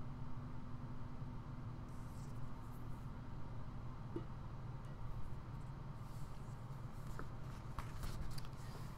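Hands tap and rustle a paper roll close by.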